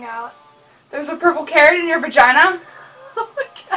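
A young woman sings loudly and off-key up close.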